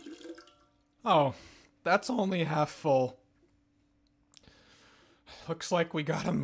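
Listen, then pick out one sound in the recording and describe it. A man speaks up close into a microphone.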